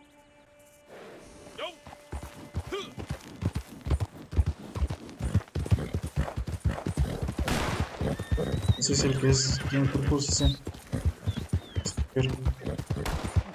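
Horse hooves thud steadily on a dirt track.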